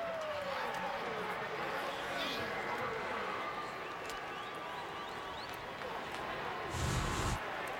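A stadium crowd cheers and roars loudly.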